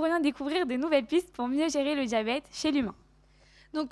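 A young woman speaks with animation through a microphone.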